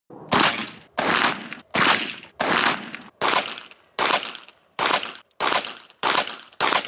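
A pistol fires shot after shot at a steady pace outdoors, each bang echoing away.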